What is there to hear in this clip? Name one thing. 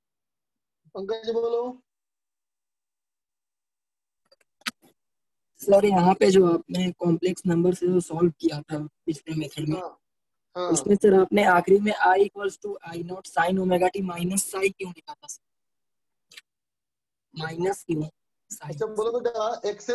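A man lectures calmly and clearly, close to a microphone.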